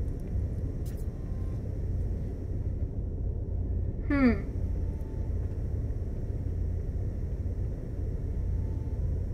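A spacecraft engine rumbles low and steady.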